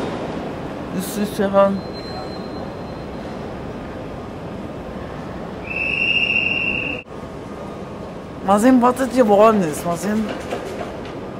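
An elderly woman speaks close by, playfully.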